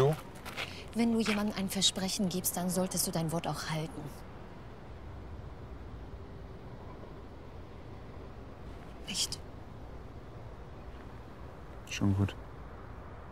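A young woman speaks tensely and close by.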